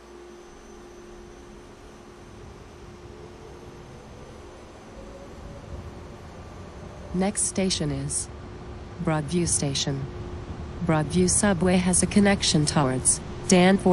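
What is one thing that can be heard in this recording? A train rumbles slowly along the track.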